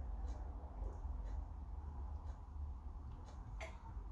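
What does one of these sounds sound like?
A man gulps a drink.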